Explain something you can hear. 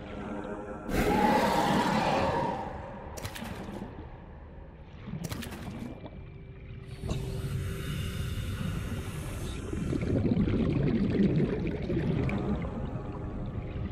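Water rumbles and bubbles in a low, steady underwater drone.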